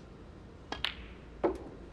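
A cue strikes a snooker ball.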